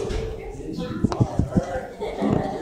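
A dog's nose bumps against the microphone with soft knocks.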